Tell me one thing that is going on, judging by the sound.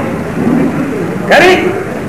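A man calls out commands loudly.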